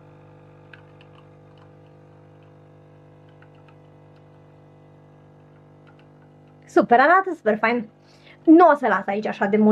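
A coffee machine hums steadily as coffee pours into a cup.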